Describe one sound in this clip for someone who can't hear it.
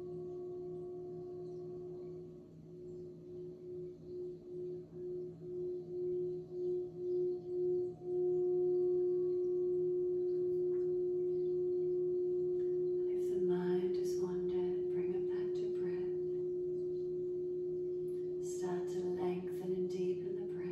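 A metal singing bowl, rimmed with a mallet, sings a sustained tone that wobbles and then steadies.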